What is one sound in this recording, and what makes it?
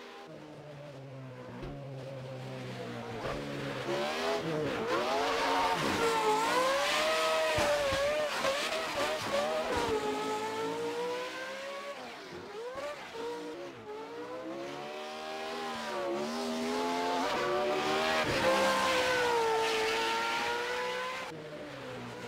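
A car engine revs hard, its pitch rising and falling.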